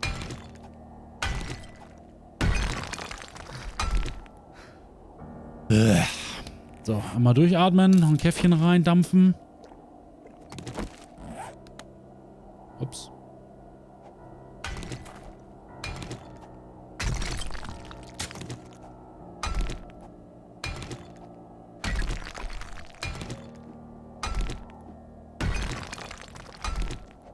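A pickaxe strikes rock again and again with sharp knocks.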